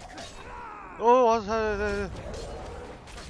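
A giant groans loudly as it falls.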